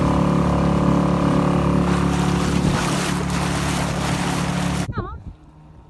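A boat engine drones loudly.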